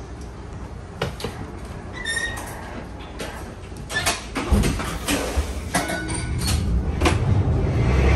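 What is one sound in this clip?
The wooden body of a streetcar rattles and knocks as it rolls.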